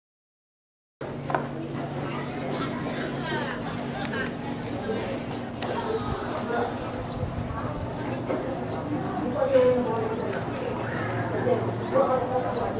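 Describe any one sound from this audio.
Children's voices chatter outdoors.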